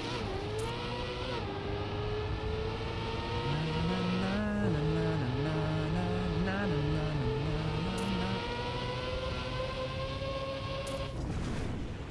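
A racing car engine whines loudly, slowly rising in pitch.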